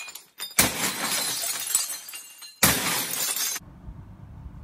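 Plates smash and shatter, with shards clattering down.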